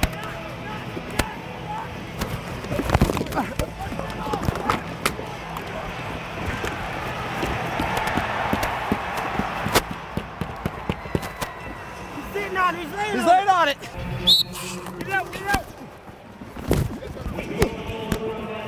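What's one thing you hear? Lacrosse sticks clack and players thud into the boards.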